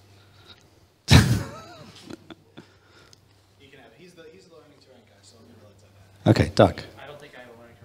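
A middle-aged man asks a question into a microphone.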